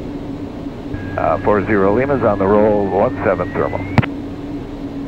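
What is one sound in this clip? A man speaks briefly and calmly through a headset microphone, heard as over a radio.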